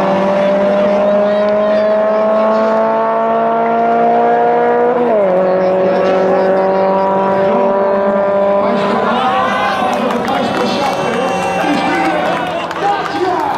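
Car engines roar as they accelerate hard, rising in pitch, dropping at a gear change and fading into the distance.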